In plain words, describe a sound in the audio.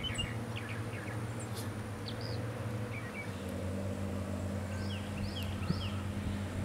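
Small birds chirp briefly nearby.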